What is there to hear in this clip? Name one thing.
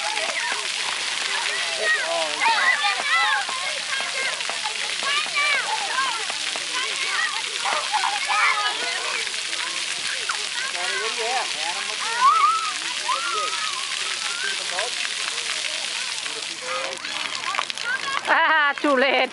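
Water sprays and splashes steadily from fountains outdoors.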